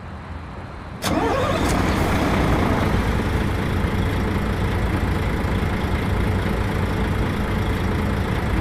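A bus engine revs up suddenly and keeps running loud.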